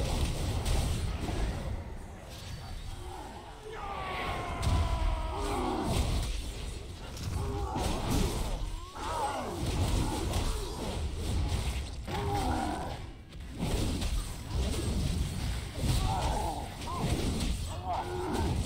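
Weapons clash and thud in quick strikes.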